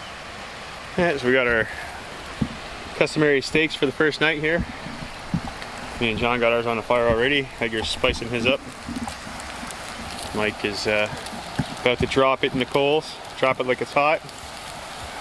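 A middle-aged man talks calmly nearby, outdoors.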